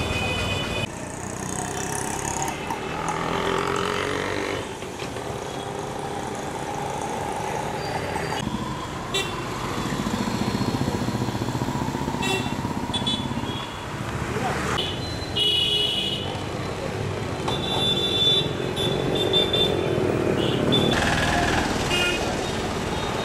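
Vehicle horns honk in short bursts.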